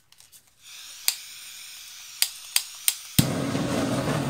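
A blowtorch clicks as it is lit.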